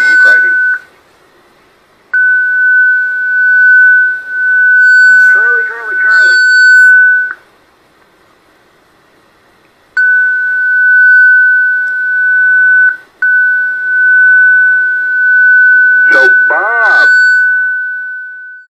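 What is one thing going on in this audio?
A radio receiver gives off a steady high whistling tone that cuts in and out.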